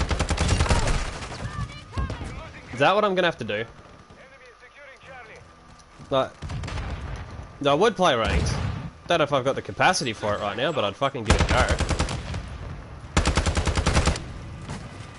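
A rifle fires rapid automatic bursts close by.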